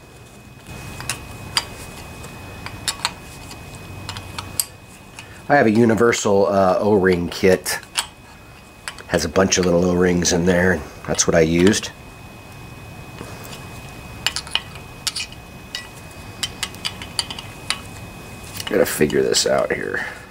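Metal tools click and scrape against a small metal part.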